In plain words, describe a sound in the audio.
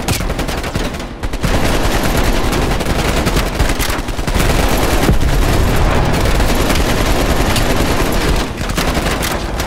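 A rifle fires rapid, loud bursts of shots.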